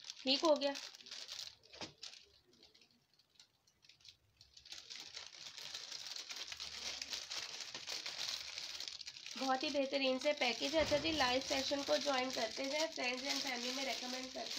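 Plastic wrapping crinkles and rustles as hands handle it.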